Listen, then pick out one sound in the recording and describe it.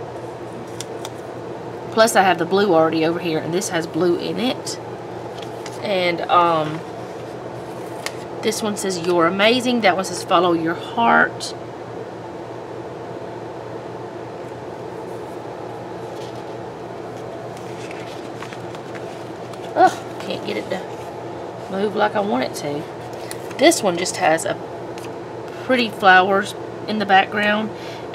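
Sticker paper crinkles softly as stickers are peeled and pressed down.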